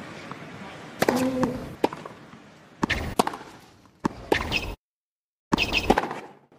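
A tennis ball is struck hard with a racket, back and forth.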